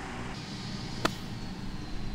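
A golf club strikes a ball out of sand with a sharp thud.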